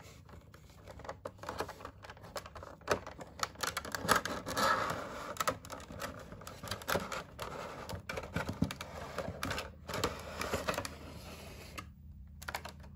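Cardboard scrapes and rustles as a box is opened by hand.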